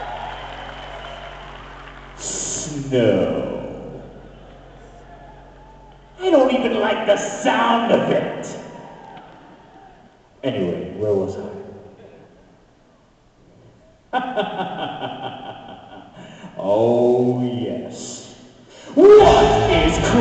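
A singer performs on stage through loudspeakers in a large echoing arena.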